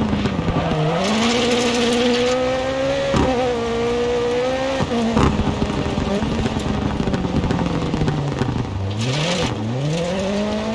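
Tyres skid and scrabble on loose gravel.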